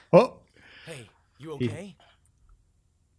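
A man speaks with a concerned tone.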